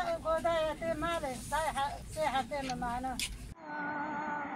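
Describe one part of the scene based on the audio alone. A crowd of women chants outdoors.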